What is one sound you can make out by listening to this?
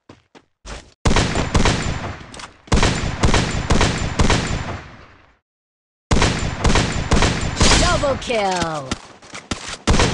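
Gunshots ring out loudly in quick bursts.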